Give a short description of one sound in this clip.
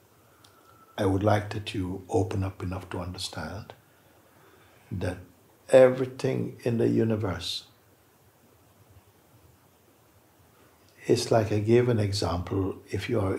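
An elderly man speaks calmly and thoughtfully, close by, with long pauses.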